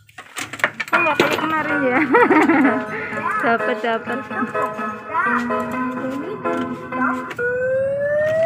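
A claw machine plays a bright electronic jingle.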